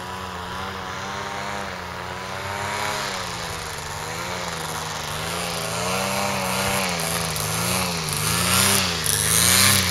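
A paramotor engine drones overhead, its pitch wavering up and down.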